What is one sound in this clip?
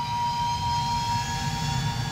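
A jet engine whines and rumbles loudly.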